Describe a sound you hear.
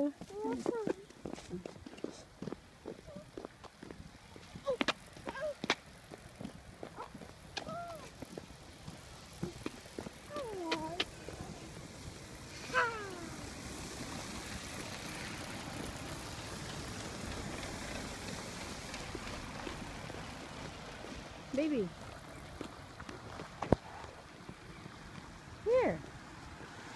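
A young girl talks and squeals close by.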